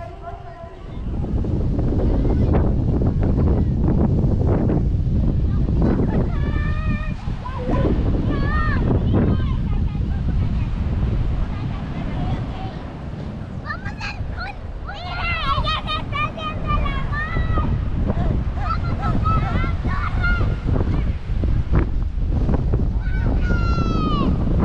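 Waves wash onto a beach outdoors in wind.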